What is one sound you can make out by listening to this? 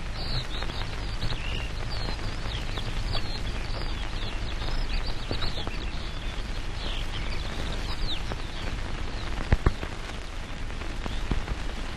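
A shallow stream babbles over stones.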